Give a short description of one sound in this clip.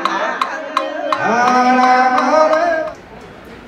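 A wooden block is struck in a steady beat.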